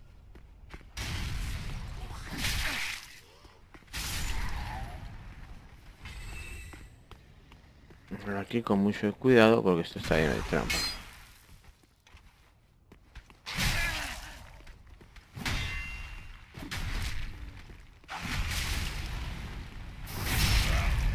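A sword swishes through the air in heavy swings.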